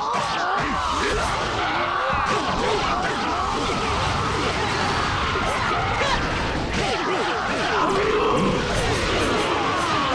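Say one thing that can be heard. Swords clash and slash over and over in a fast fight.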